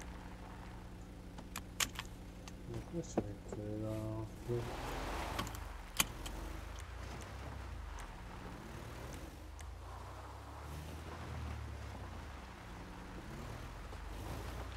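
Gravel crunches under tyres.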